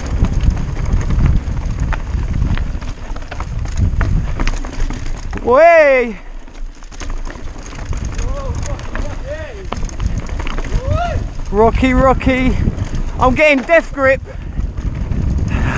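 Bicycle tyres rattle and crunch over a rough, stony trail.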